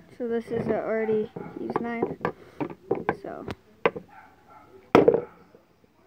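A can is handled and knocks against a wooden floor.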